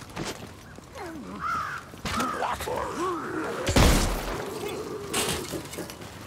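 Creatures snarl and shriek nearby.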